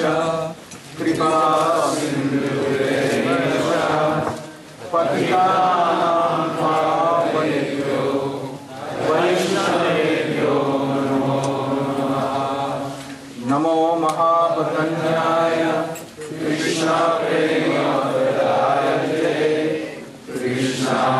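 An elderly man sings slowly through a microphone in long, drawn-out phrases.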